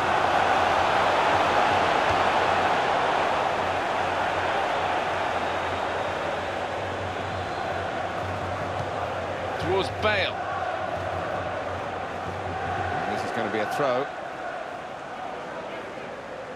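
A stadium crowd roars steadily, slowly fading a little.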